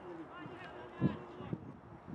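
A ball is kicked with a dull thump.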